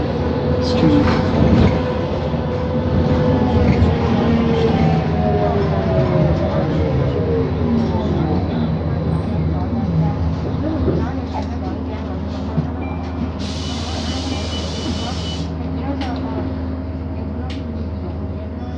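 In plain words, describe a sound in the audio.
Traffic passes by outside the bus window.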